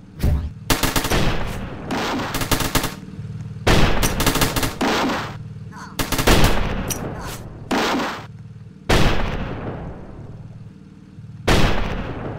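Guns fire in loud, repeated bursts.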